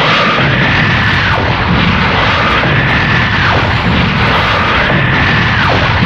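A huge explosion roars and rumbles.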